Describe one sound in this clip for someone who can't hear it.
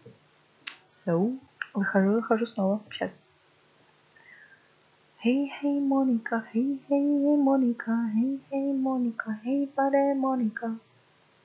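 A young woman talks into a headset microphone, close and in a drawn-out, sing-song way.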